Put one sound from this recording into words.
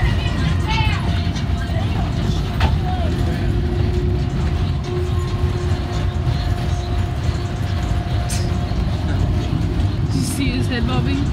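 A bus engine rumbles steadily throughout.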